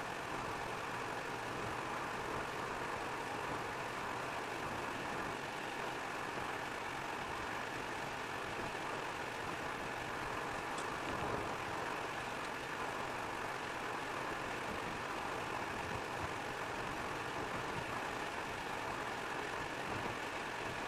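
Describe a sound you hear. Tyres hiss steadily on a wet road.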